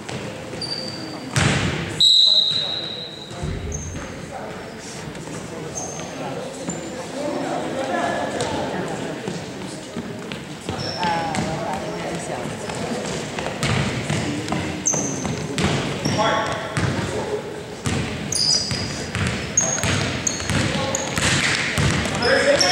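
Sneakers squeak sharply on a hardwood floor in a large echoing gym.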